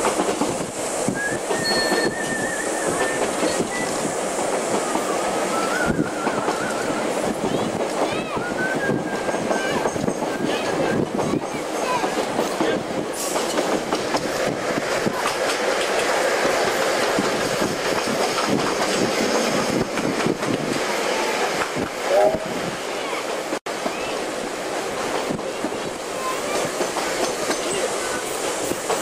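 A train rumbles and rattles steadily along the track.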